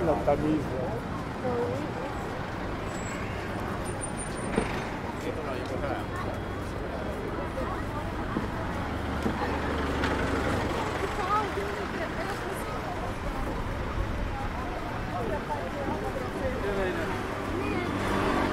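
Traffic drives past.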